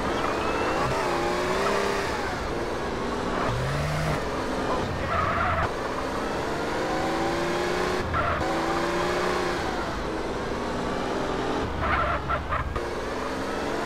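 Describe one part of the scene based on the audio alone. A car engine revs and changes pitch as it speeds up and shifts gears.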